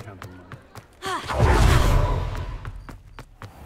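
A magical whoosh rushes past.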